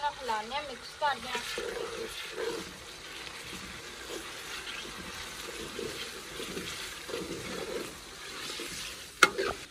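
A metal spoon scrapes and stirs food in a pan.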